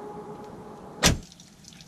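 A metal hatch on a truck slams shut.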